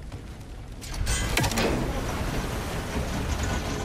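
Water gushes and splashes loudly.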